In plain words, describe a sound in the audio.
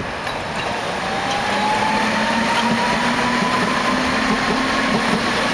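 A tram's motor whines with a rising tone.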